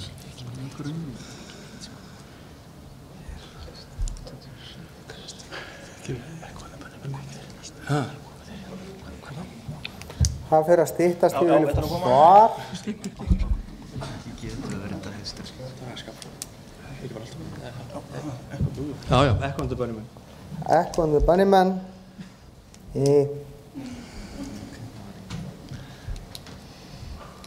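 Middle-aged men talk with each other into a microphone.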